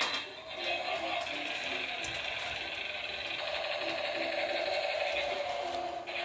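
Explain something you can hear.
A small battery toy car whirs as it rolls across a hard floor.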